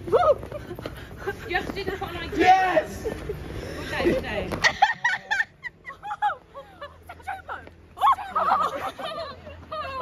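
Young women laugh and shout excitedly close by.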